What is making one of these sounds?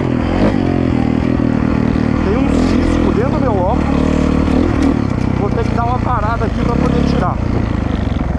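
A dirt bike engine roars and revs up and down close by.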